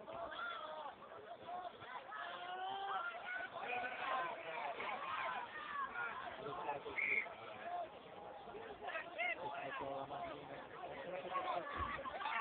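Young players shout and call to each other outdoors in the open.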